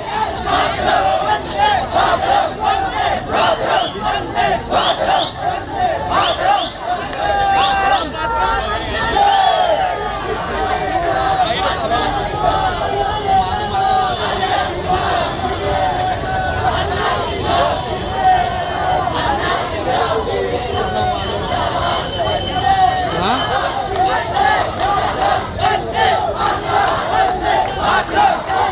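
A large crowd of young men chants and shouts slogans outdoors.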